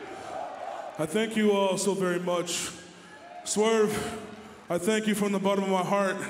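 A man speaks loudly and forcefully into a microphone over a loudspeaker.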